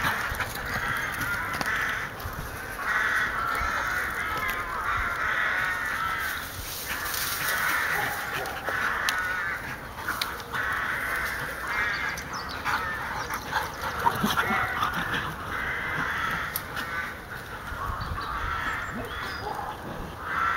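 Dogs run and scamper across soft ground.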